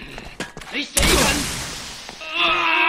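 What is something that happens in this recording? A loud blast bursts and echoes.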